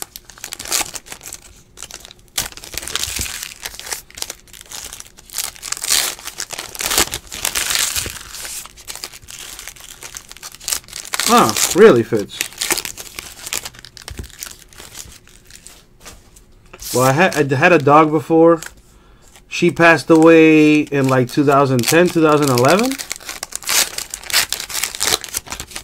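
Foil card wrappers crinkle and rustle close by.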